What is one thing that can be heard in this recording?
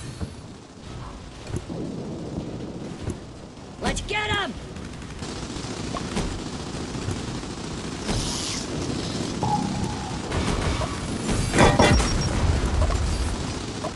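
Game battle sounds of small explosions and gunfire play steadily.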